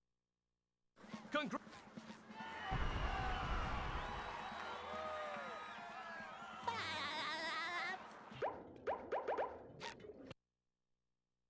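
Cartoonish video game sounds play.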